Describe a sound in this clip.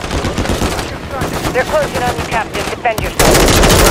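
A helicopter's rotor thumps loudly nearby.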